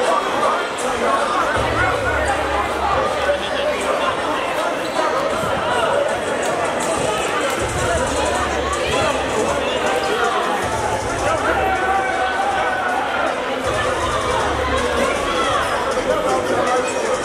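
A crowd of men, women and children chatter and call out in a large echoing gym.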